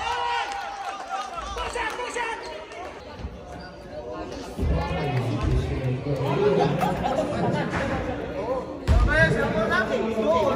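A crowd of men and women chatters and calls out in an echoing hall.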